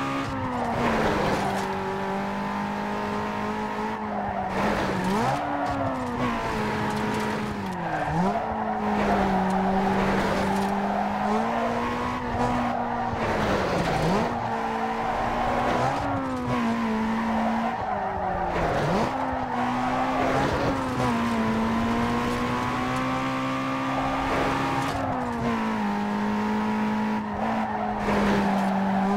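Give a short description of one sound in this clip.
A car engine roars steadily, its pitch dipping briefly as gears shift.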